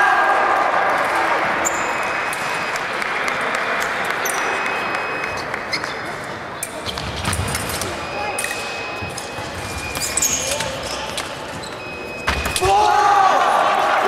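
Foil blades click and clash together.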